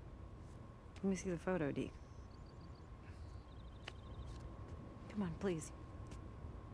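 A young woman speaks calmly in short phrases.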